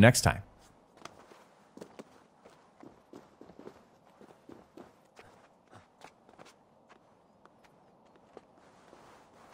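Hands and boots scuff and tap on rock during a climb.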